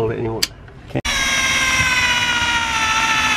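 An electric drill whirs steadily at high speed.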